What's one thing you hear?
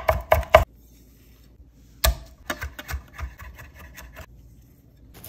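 A kitchen knife chops herbs on a wooden cutting board.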